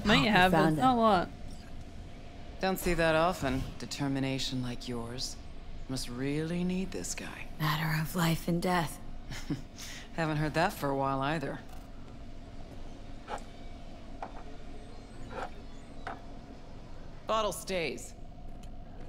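A young woman talks into a close microphone.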